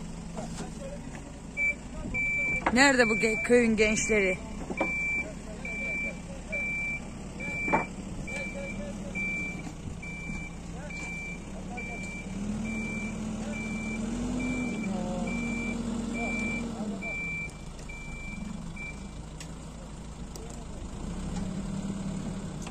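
A diesel backhoe loader engine runs and revs under hydraulic load.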